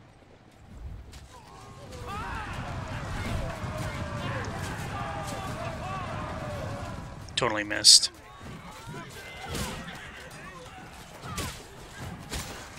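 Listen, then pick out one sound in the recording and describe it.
Swords clash and armour clatters in a large battle.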